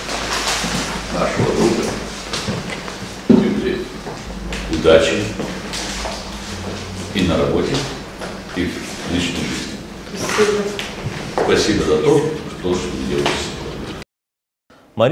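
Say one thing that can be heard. An elderly man talks with animation, close by.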